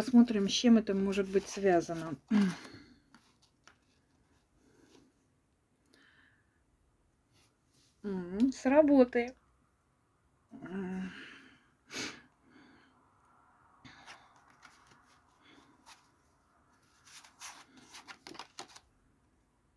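Playing cards rustle and slap softly as they are shuffled by hand.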